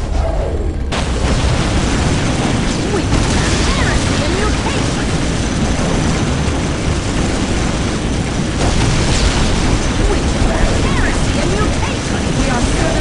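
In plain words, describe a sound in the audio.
Flamethrowers roar.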